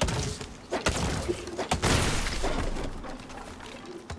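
A tree cracks and crashes down.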